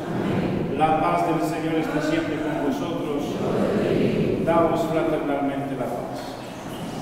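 A man speaks calmly through a loudspeaker in an echoing hall.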